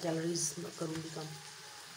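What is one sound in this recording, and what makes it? Fruit bumps softly against a plastic basket.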